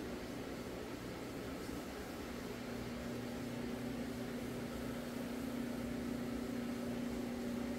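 A floor scrubbing machine hums steadily, growing slightly louder.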